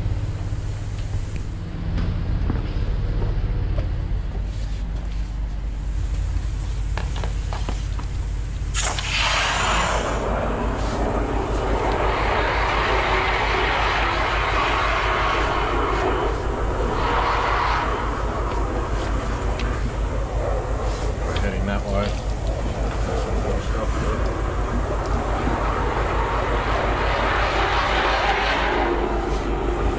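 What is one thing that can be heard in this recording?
A drain cleaning machine's motor hums steadily.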